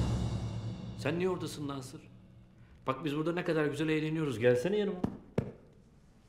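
A man speaks with emphasis.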